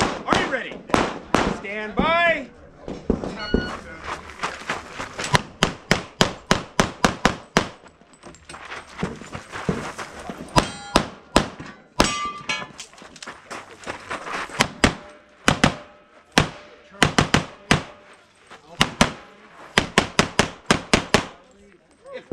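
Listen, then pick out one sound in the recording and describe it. Gunshots crack in rapid bursts outdoors.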